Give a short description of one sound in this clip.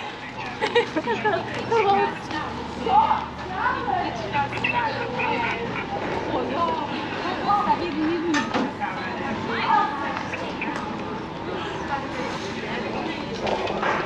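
People's voices chatter nearby outdoors.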